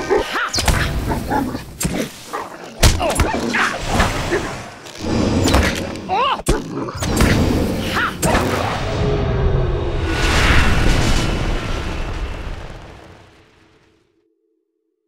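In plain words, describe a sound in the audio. Game combat sound effects thud and whoosh as a fighter battles a beast.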